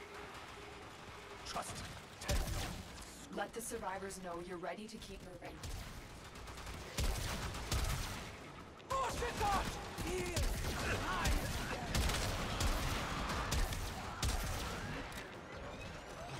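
Weapons fire in sharp bursts with booming blasts.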